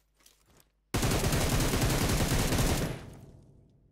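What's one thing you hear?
A gun fires a loud rapid burst.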